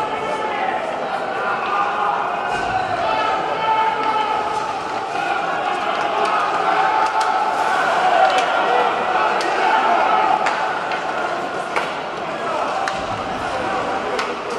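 Ice skates scrape and hiss on the ice.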